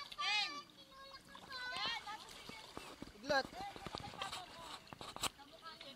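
Water splashes as swimmers move through a pool.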